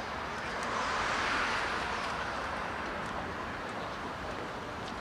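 Traffic rushes past steadily on a nearby road.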